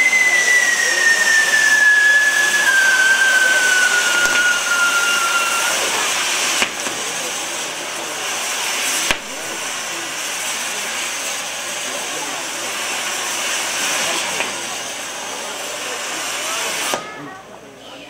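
Fireworks hiss and roar steadily.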